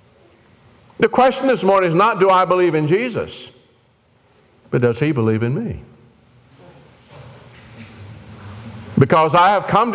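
An elderly man preaches with emphasis into a microphone, in bursts with pauses.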